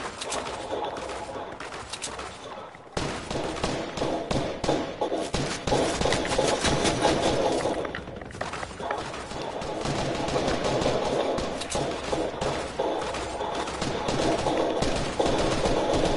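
Footsteps patter quickly on grass and dirt.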